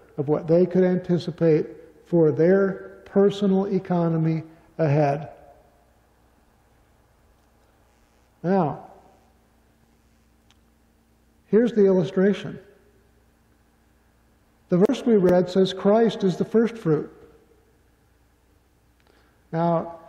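A middle-aged man speaks calmly into a microphone in an echoing hall, pausing between phrases.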